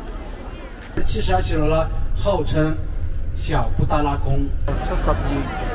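A man speaks through a microphone in an animated voice.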